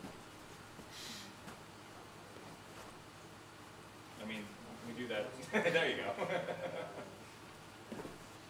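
A man stomps his feet on the floor.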